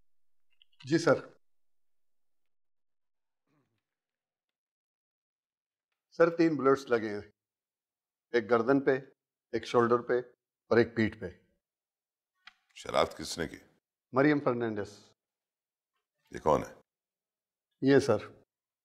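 A man speaks firmly in short bursts, close by.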